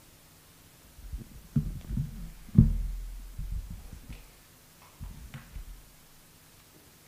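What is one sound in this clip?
A chair creaks and bumps as a person sits down at a table.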